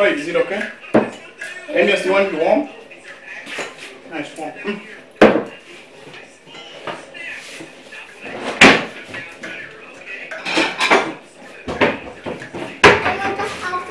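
Dishes clatter and knock on a counter.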